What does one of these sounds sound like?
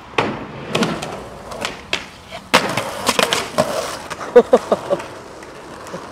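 Skateboard wheels roll on pavement.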